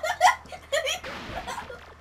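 Video game shots and blasts pop rapidly.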